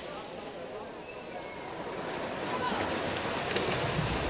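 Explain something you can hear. Swimmers splash and kick through the water in an echoing pool hall.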